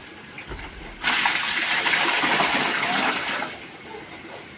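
Feed pours from a plastic bucket into a trough with a loud rushing sound.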